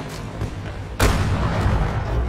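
A tank cannon fires with a loud blast.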